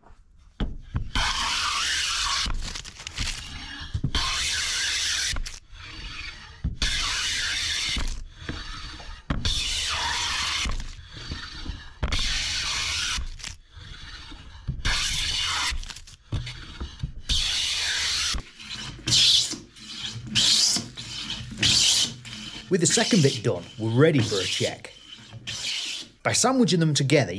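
A hand plane shaves wood in long, rasping strokes.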